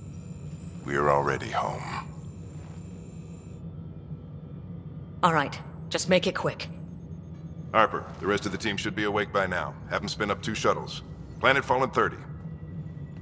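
A man speaks calmly and low.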